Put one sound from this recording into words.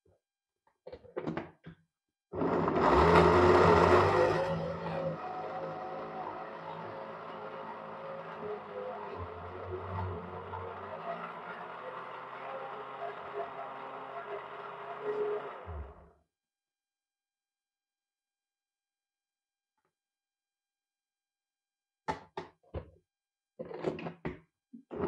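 A plastic lid clicks and rattles against a blender jug.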